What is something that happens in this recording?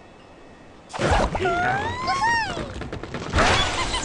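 A cartoon bird squawks.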